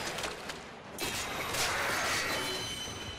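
Metal weapons clash in rapid strikes.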